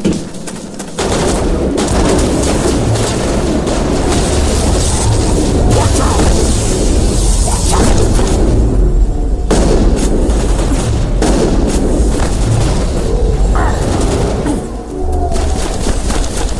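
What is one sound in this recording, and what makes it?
Gunfire and energy blasts crackle and boom in a game battle.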